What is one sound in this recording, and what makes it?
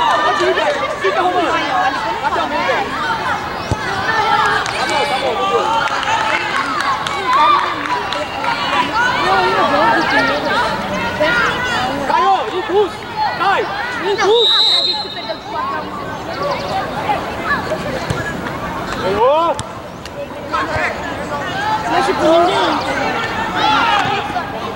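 Boys and spectators shout and call out across an outdoor pitch.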